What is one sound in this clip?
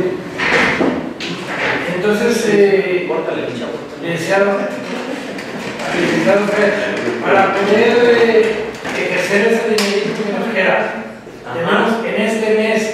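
A man speaks steadily to a group.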